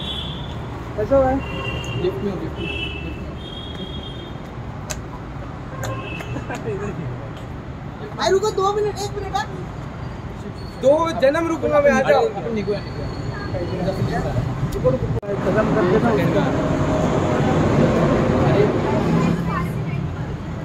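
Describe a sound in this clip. A young man talks and laughs nearby.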